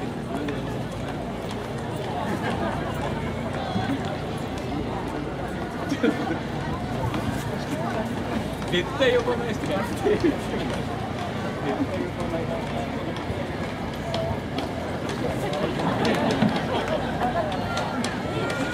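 A crowd of fans chatters and calls out outdoors.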